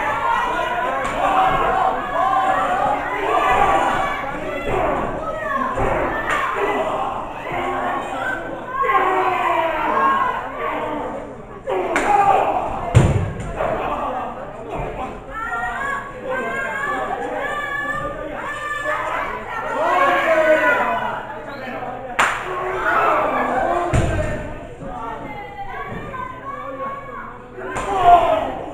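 A crowd of spectators chatters and cheers throughout, in a hall that echoes.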